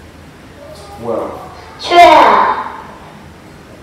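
A young boy answers in a small voice.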